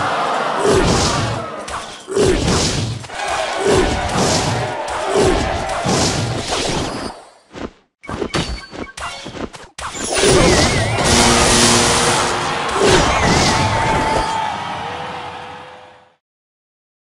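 Game sound effects clash and chime as troops battle.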